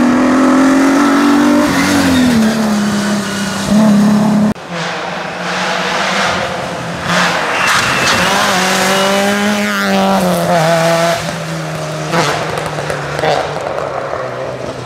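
Tyres hiss on the wet road.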